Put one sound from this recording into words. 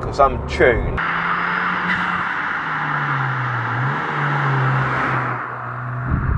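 A car drives past on a road, its engine droning and fading.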